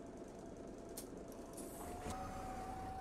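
A bus door opens with a click and a hiss of air.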